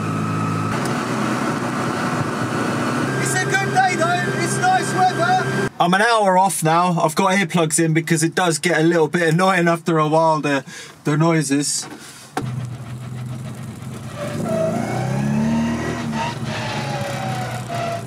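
A small car engine drones steadily while driving on a motorway.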